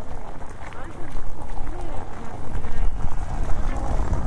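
Men and women chatter nearby in a passing crowd.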